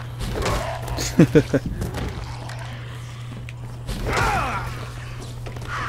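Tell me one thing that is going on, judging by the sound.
A creature snarls and groans up close.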